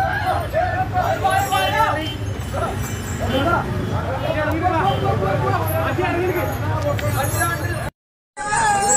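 A crowd of men chatters and calls out nearby.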